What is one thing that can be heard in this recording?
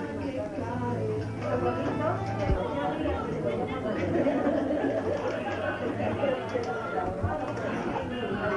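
Men and women chatter together nearby.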